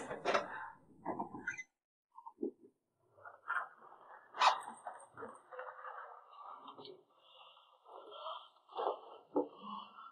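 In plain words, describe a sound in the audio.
A leather handbag rustles and shifts as it is handled.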